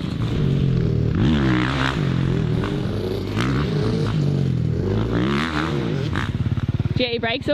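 A dirt bike engine roars and whines as the bike climbs a jump.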